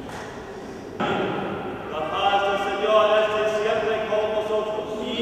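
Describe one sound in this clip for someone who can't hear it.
A man chants loudly in a large echoing hall.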